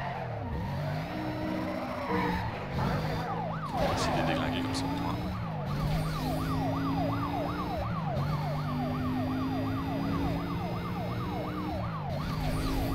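Police sirens wail close behind.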